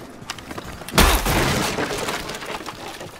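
A wooden barricade smashes and splinters apart.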